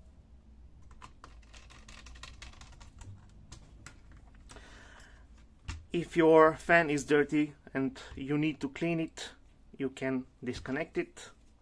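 Small plastic parts click and tap as a laptop is handled.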